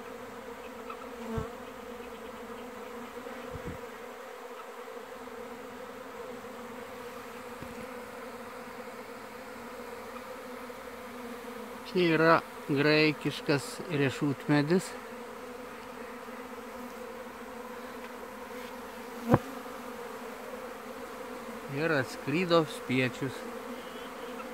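Bees buzz steadily around a hive.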